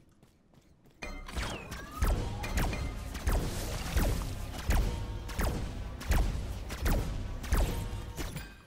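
Game combat effects clash and boom rapidly.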